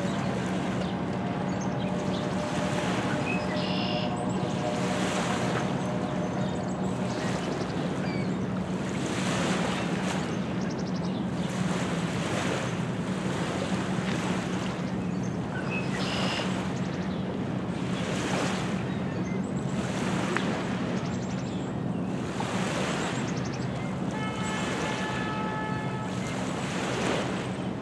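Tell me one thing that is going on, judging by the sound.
Small waves lap and wash rhythmically against a rocky shore.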